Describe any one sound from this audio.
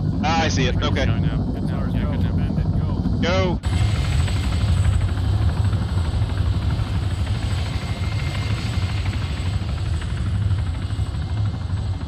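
A helicopter's engine and rotor drone steadily.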